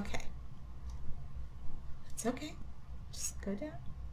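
A pistol's magazine clicks into place.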